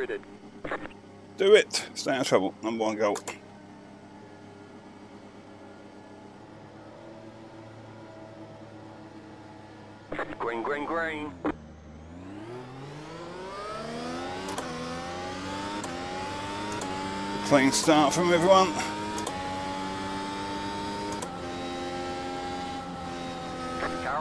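A race car engine idles, then revs up and climbs through the gears.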